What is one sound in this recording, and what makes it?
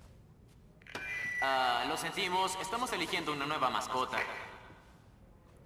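A teenage boy speaks loudly through a megaphone.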